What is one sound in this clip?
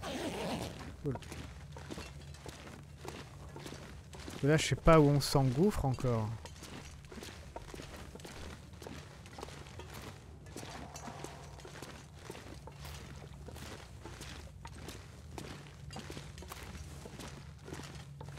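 Footsteps crunch steadily over rocky ground.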